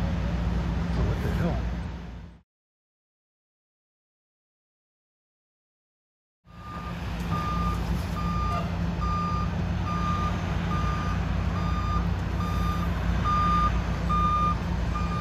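A fire truck engine idles with a steady low rumble.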